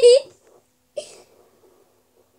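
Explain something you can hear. A young boy speaks briefly close by.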